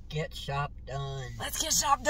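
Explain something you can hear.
An elderly woman exclaims with surprise.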